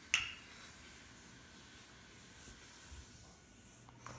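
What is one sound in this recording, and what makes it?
A wooden rolling pin rolls over dough.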